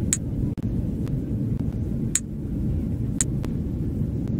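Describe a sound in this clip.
Short bright clicks sound now and then.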